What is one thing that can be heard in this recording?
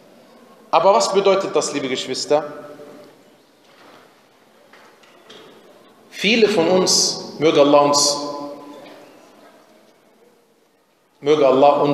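A man recites in a melodic voice through a microphone, with a long echo.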